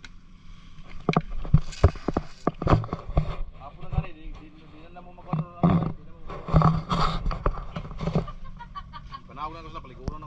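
Hands and feet scrape and knock against rough rock while climbing.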